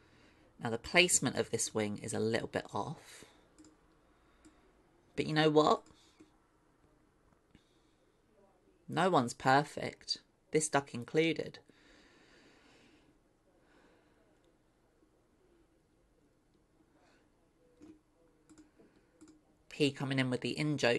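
A young woman talks casually into a close microphone, in bursts with pauses.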